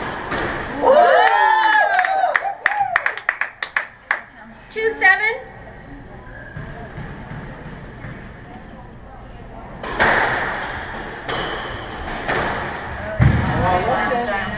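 A squash ball smacks sharply off racquets and walls.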